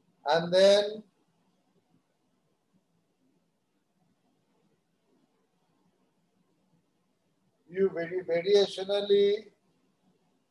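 A man speaks calmly over an online call, in short bursts with a long pause between them.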